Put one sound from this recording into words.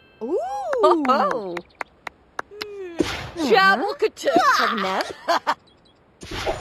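A short cheerful game jingle plays with bright chimes.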